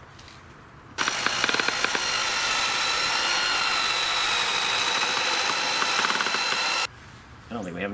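A cordless drill whirs steadily as it drives screws into wood.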